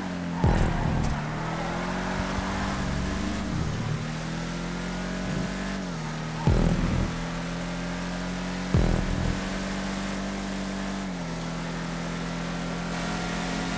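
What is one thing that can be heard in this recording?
A car engine roars steadily, shifting pitch as it changes gear.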